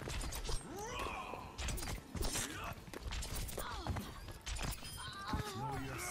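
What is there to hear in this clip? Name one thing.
Video game gunfire crackles in sharp bursts.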